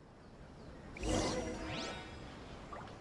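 A bright magical chime rings out with a rising sweep.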